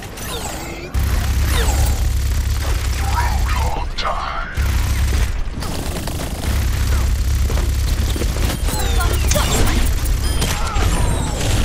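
A rapid-fire video game gatling gun fires in bursts.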